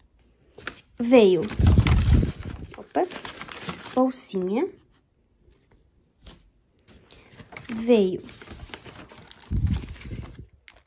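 A paper bag rustles and crinkles as it is handled.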